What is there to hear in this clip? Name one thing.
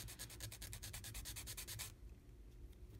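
A metal file rasps quickly against a small piece of wood.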